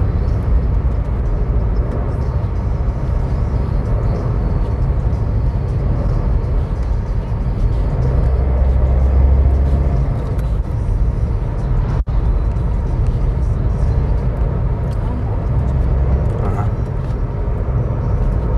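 Tyres roll steadily on smooth pavement.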